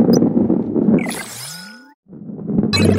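A bright chime sounds and glides upward.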